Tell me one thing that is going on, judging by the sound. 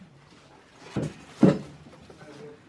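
A leather saddle thumps as it is lifted and set down.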